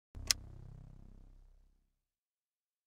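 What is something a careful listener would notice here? A sharp click is followed by a deep, fading boom from a game menu.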